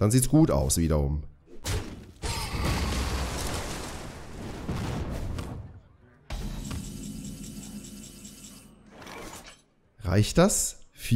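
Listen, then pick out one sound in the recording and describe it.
A man talks with animation close to a headset microphone.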